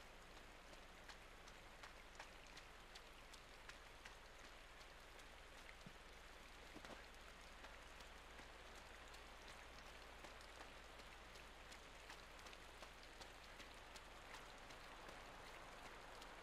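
Footsteps run quickly along a hard road.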